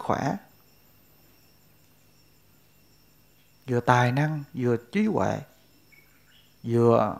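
A middle-aged man speaks calmly and slowly into a close microphone, with long pauses.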